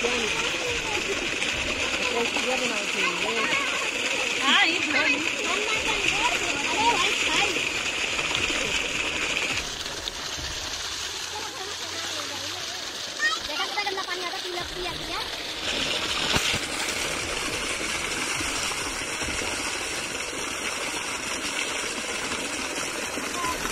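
Water gushes from a pipe and splashes steadily into a pool outdoors.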